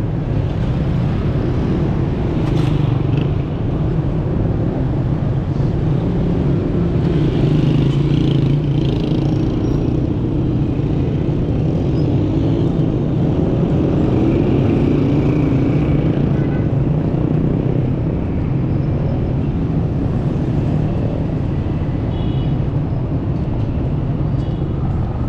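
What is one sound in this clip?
Traffic hums and rumbles steadily on a busy street outdoors.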